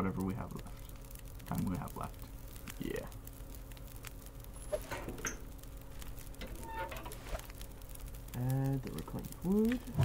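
A fire crackles in a wood stove.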